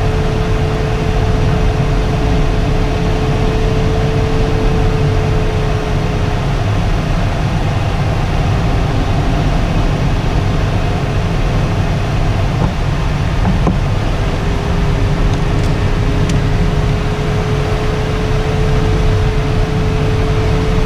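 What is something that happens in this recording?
Air rushes loudly and steadily past a glider's canopy.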